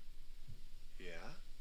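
A man answers in a calm, questioning voice.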